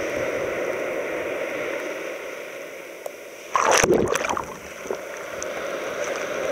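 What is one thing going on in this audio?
Waves break and rush onto the shore.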